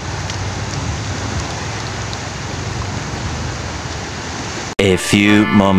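Shallow water ripples and laps gently close by.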